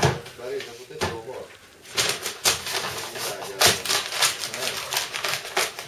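Cardboard rustles and scrapes as it is folded by hand.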